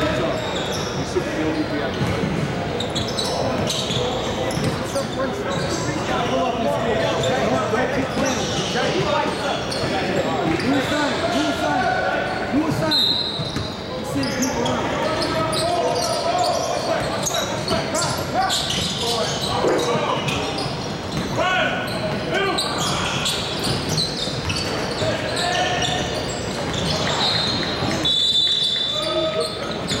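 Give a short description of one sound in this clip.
Players call out to each other in a large echoing gym.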